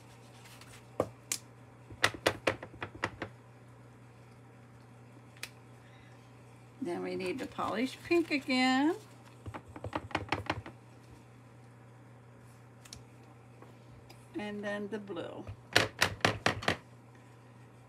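A rubber stamp taps and presses against paper on a hard surface.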